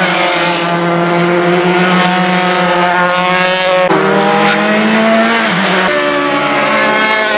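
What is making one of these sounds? Racing car engines scream loudly at high revs as the cars speed past.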